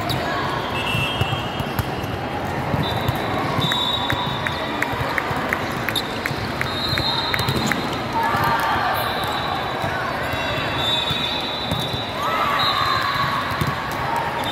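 A volleyball is struck with a thump.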